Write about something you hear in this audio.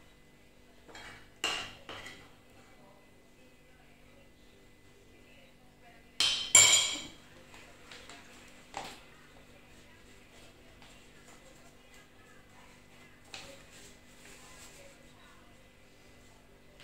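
A spoon scrapes and clinks against a plate.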